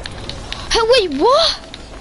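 Wind rushes as a game character glides through the air.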